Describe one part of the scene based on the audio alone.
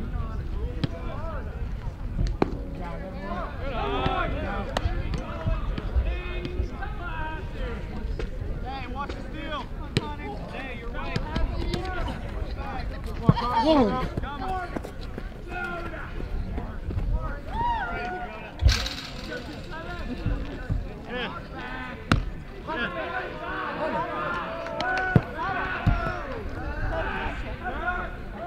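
Several young men talk and call out across an open field.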